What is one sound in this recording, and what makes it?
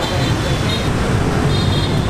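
Motorbikes ride past.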